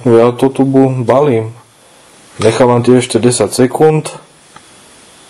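A man speaks quietly and close by, pausing between phrases.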